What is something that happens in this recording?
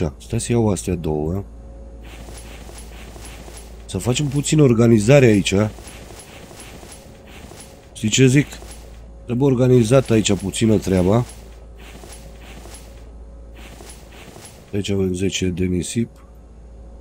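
A man talks casually into a close microphone, in short bursts.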